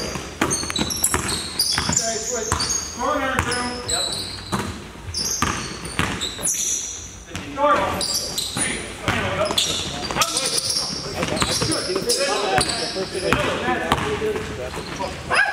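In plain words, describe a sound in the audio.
A basketball bounces sharply on a hard floor in an echoing hall.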